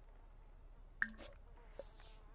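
A short interface click sounds.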